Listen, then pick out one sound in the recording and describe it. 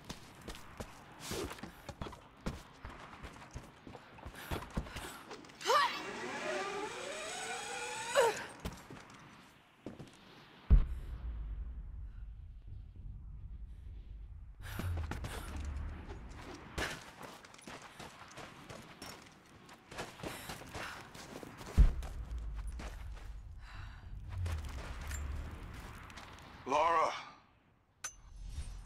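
Footsteps thud on wooden boards and crunch in snow.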